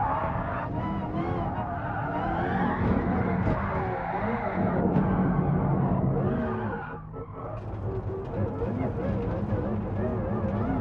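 A racing car engine roars and revs, dropping in pitch as it slows and rising again.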